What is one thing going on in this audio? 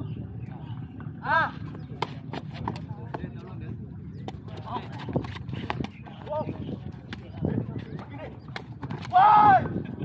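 A ball is kicked with sharp thuds.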